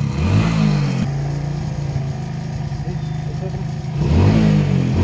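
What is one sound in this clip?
A motorcycle engine idles steadily.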